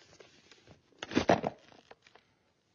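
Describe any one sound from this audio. A young woman speaks quietly, close by.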